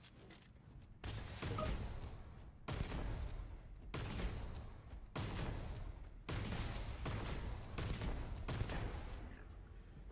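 A laser gun fires in repeated bursts.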